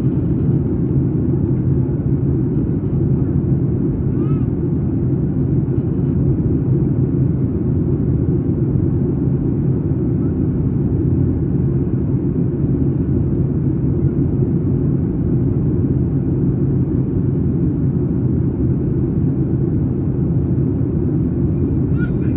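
Jet engines roar steadily from inside an airplane cabin in flight.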